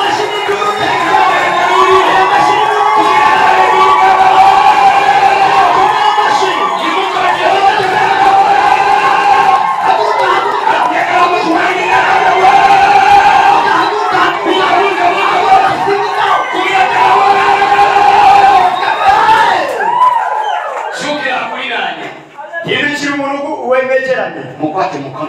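A man preaches loudly and passionately through a microphone over loudspeakers.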